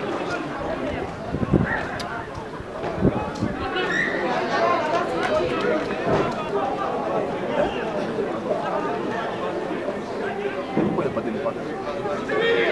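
Men shout and call out to each other on an open field.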